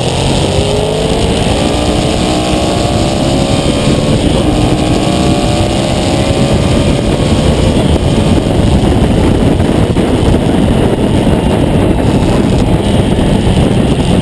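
Wind rushes loudly past a rider's helmet.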